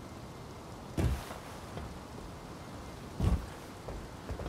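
A heavy thud of someone landing after a jump.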